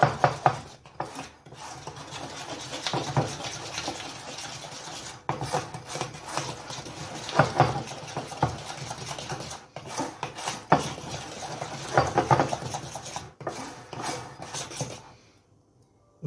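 Hands squelch and slap through wet batter.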